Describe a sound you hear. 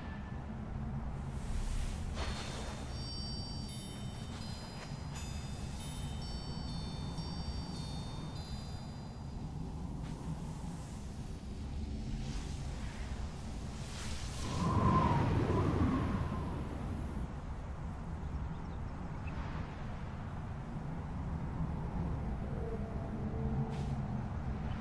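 Wind rushes steadily, swelling into a louder gust partway through.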